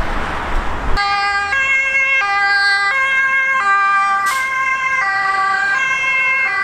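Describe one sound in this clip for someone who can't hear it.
A fire engine siren wails in a loud two-tone pattern close by.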